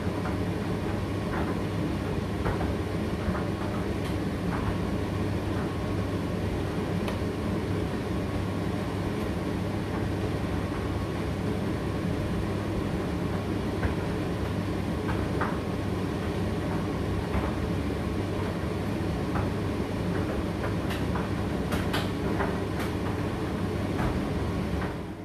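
A condenser tumble dryer hums and whirs as it runs a cycle.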